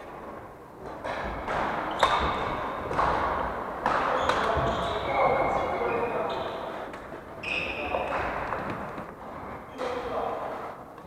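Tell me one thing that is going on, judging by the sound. Men call out to each other across the hall.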